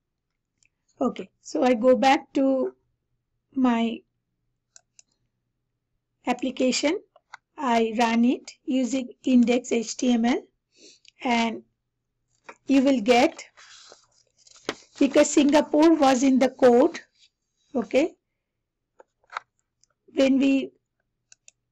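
A woman talks calmly into a headset microphone, close and clear.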